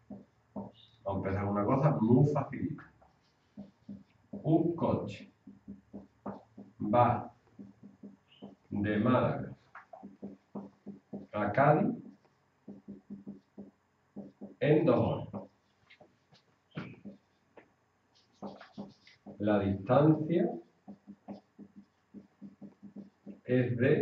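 A man speaks calmly, in short bursts, nearby.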